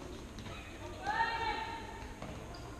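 Players' shoes squeak sharply on the hard floor.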